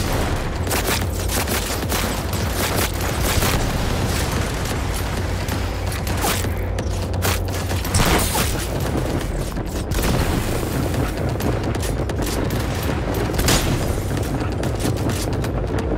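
Rifle shots fire in quick bursts with loud cracks.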